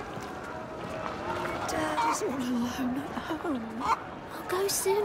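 A woman speaks with worry in a close, clear voice.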